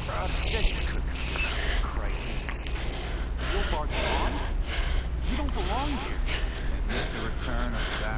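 A man speaks in a menacing tone, close by.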